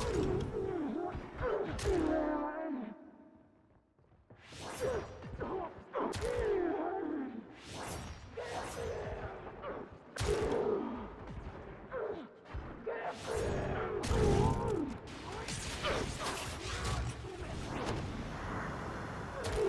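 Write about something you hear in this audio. Guns fire in loud bursts.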